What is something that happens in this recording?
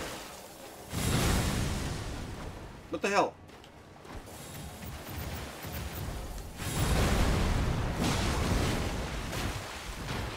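Swords clash and strike with heavy thuds.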